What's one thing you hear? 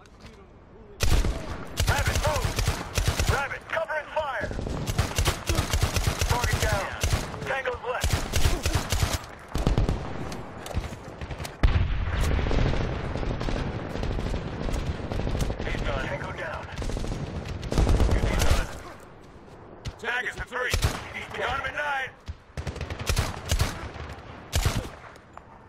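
A rifle fires single loud shots.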